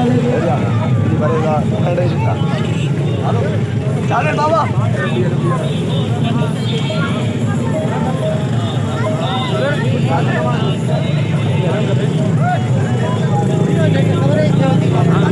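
A crowd of men and children chatters and calls out nearby outdoors.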